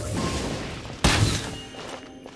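A fiery burst whooshes.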